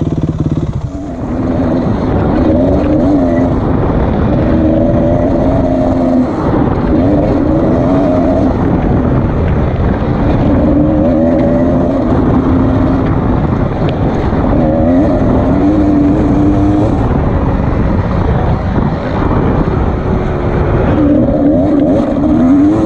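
A dirt bike engine revs up and down loudly and close as it rides over rough ground.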